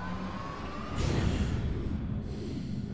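A jet of flame roars beneath a descending lift.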